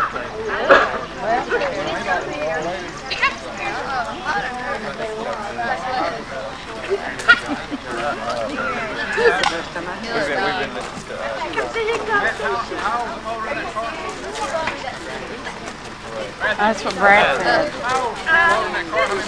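Several young women chat and laugh nearby, outdoors.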